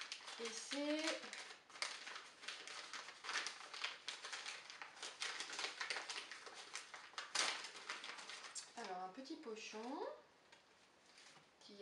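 Paper tears.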